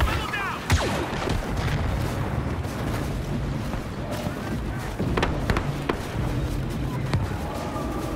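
Laser guns fire in sharp, scattered shots.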